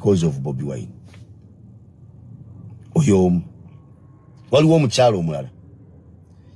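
A man speaks calmly in short phrases close to the microphone.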